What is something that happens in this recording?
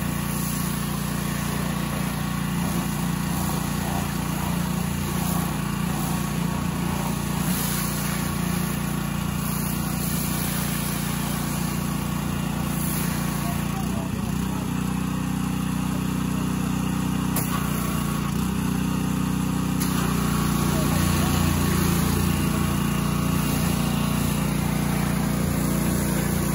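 A generator engine hums steadily nearby.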